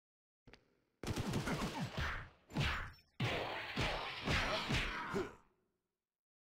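Blows land in a loud, noisy fight.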